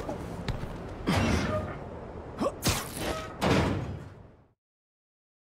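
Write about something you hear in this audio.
A rushing whoosh sweeps past as a figure leaps into the air.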